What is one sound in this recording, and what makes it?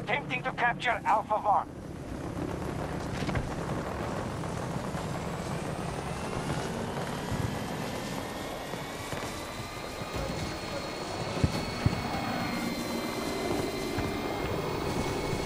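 A small vehicle's engine hums and revs as it drives.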